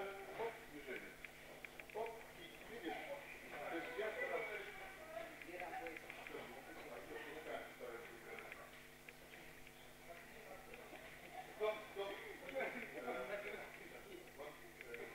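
Young people talk and call out in a large echoing hall.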